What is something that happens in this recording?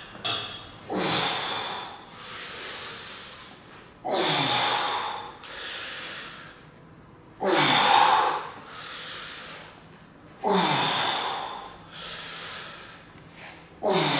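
A man exhales forcefully with effort, again and again.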